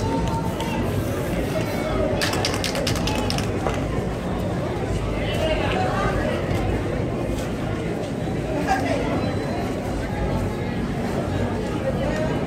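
A spray can hisses in short bursts.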